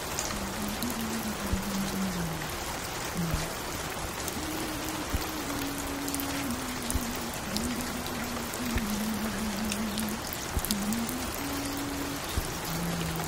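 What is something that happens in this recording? A vinyl record crackles and pops softly.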